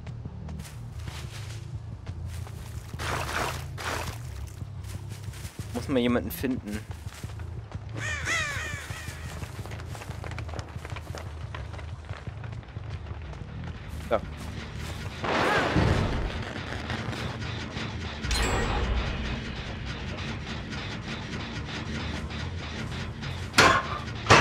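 Heavy footsteps tread steadily over snowy ground.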